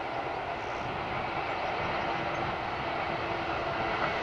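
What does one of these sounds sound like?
Freight wagons clatter along the rails.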